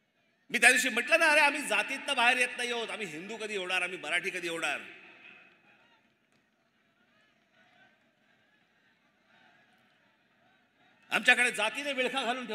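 A man gives a speech forcefully through a microphone and loudspeakers, echoing outdoors.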